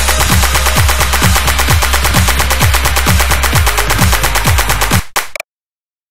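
Fast electronic dance music plays with a thumping beat, then stops abruptly.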